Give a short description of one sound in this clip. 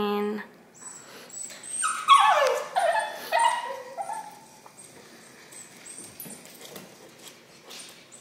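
A small dog's paws patter on a wooden floor.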